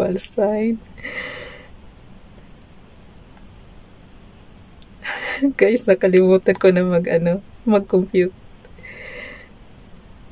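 A middle-aged woman laughs softly.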